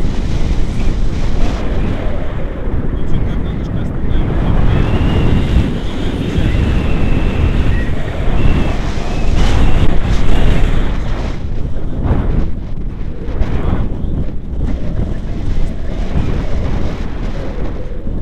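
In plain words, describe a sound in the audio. Wind roars and buffets loudly against a microphone outdoors.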